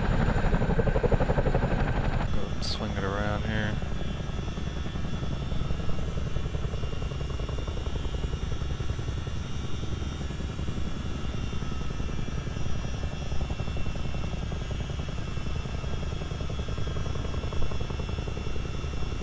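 A helicopter engine whines.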